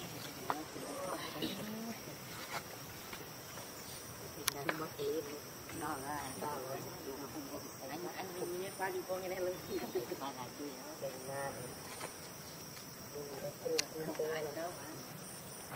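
A baby monkey squeaks and chirps close by.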